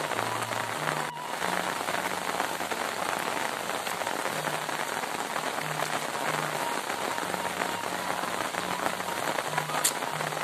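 Steady rain falls outdoors, hissing on the ground and leaves.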